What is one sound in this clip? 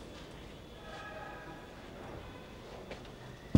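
A man's footsteps scuff softly on a hard floor.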